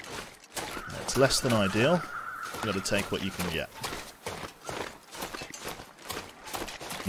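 Footsteps crunch through deep snow.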